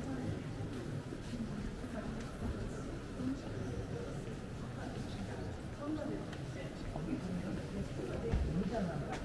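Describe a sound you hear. A crowd of visitors murmurs and talks quietly in a large echoing hall.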